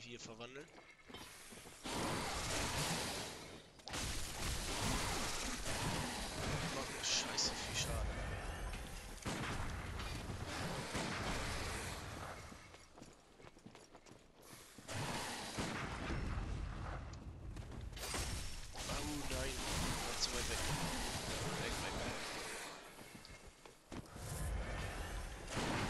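Heavy footsteps run on stone.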